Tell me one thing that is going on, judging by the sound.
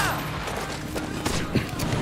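A pistol's metal parts click during reloading.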